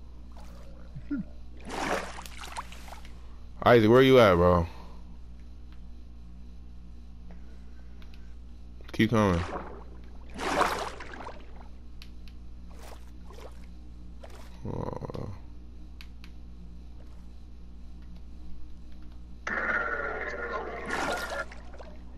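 Water splashes and swirls as a swimmer breaks the surface and dives under.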